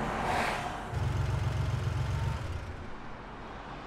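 A car engine idles with a low rumble.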